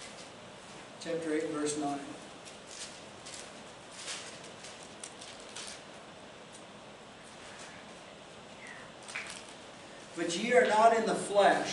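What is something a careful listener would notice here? An older man speaks calmly, with long pauses between phrases.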